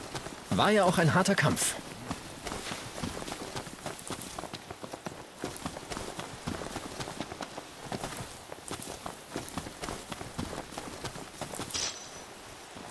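Footsteps run quickly over grass and dry ground.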